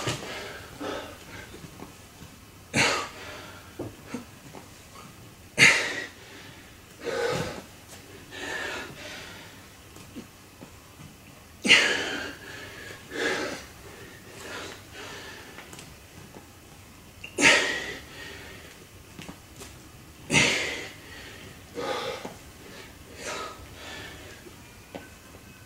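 A man breathes out hard and rhythmically, close by.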